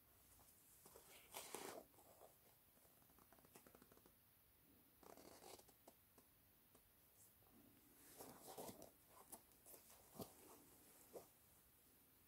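Hands squeeze and flex a leather sneaker, which creaks and rustles softly.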